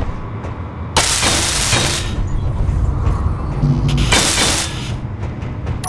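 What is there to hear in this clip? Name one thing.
A welding tool hisses in short bursts.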